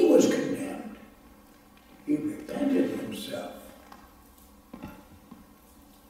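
An elderly man speaks slowly and solemnly in a room with a light echo.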